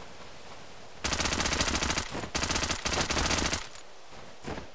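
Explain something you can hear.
Gunfire rattles in loud bursts.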